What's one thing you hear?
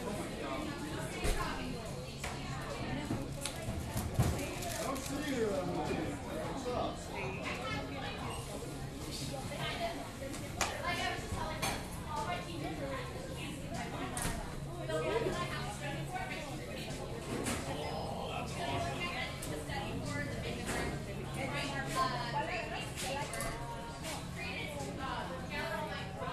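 Men and women chatter indistinctly all around in a busy room.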